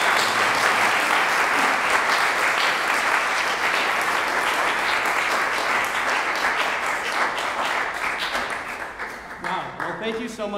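An audience applauds in a large hall, then the applause fades.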